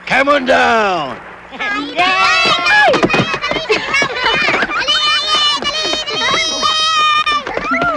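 Young children sing a cheerful song together.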